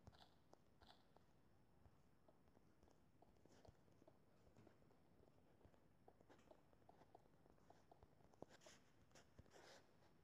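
Soft clicking game sound effects of stone blocks being placed in a video game.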